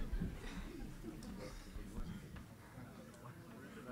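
Men on a panel laugh softly.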